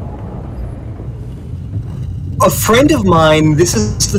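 A heavy stone door grinds open with a low rumble.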